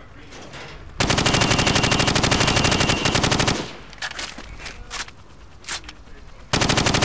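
A rifle fires in rapid automatic bursts in an echoing hall.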